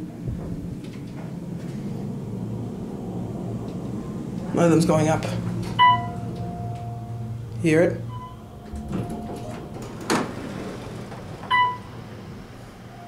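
An elevator car hums steadily as it moves.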